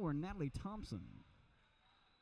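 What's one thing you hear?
A man speaks loudly and briefly in an echoing gym.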